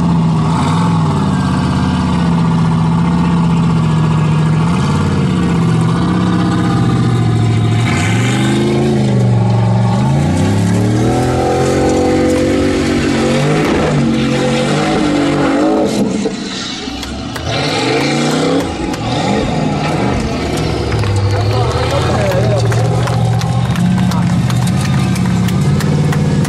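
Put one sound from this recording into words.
An engine roars and revs hard, rising and falling in pitch.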